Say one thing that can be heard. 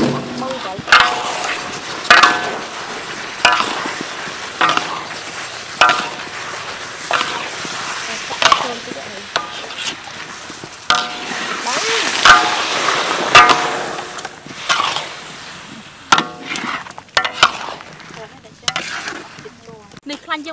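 Sausages sizzle in hot oil and sauce.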